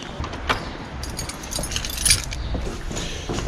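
Keys jingle and clink close by.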